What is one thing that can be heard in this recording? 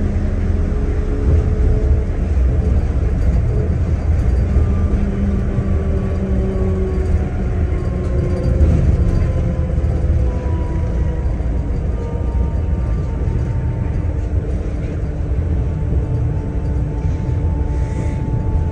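An electric motor whines with a slowly falling pitch.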